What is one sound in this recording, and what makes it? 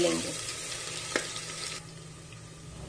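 Onions sizzle loudly in hot oil.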